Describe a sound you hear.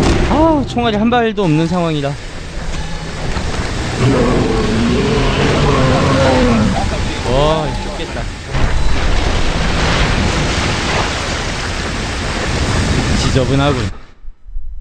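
A huge creature roars and growls loudly.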